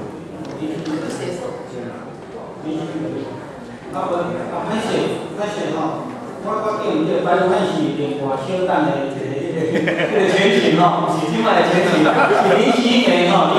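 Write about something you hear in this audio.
An elderly woman talks nearby.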